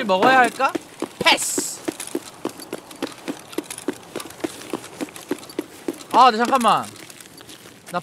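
Footsteps crunch quickly over gravel.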